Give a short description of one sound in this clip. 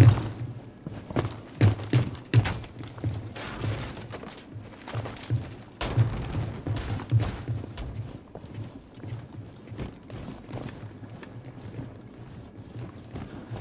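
Footsteps thud on a hard floor at a quick pace.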